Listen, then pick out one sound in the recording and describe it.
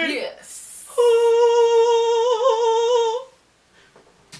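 A young man sings a long, high note up close, wavering near the end.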